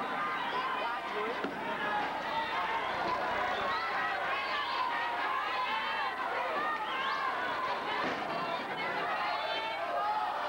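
A large crowd shouts and cheers in a big echoing arena.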